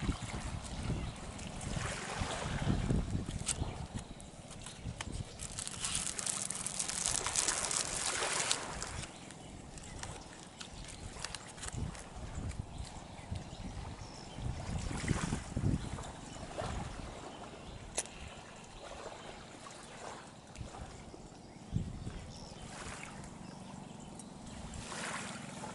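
Wind blows outdoors and rustles leaves.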